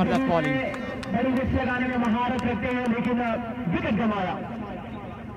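Young men shout and cheer nearby outdoors.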